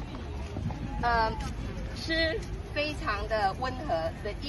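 A small child chatters nearby.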